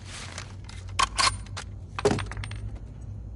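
A rifle's metal parts click and clack as they are handled.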